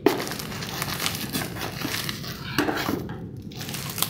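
Hands rustle bubble wrap as they lift it from a box.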